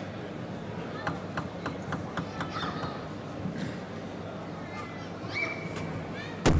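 A table tennis ball bounces and clicks off a table and paddles.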